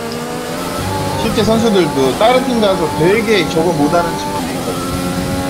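Other racing cars whine past close by.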